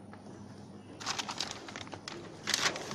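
Plastic parts rustle and click inside a car.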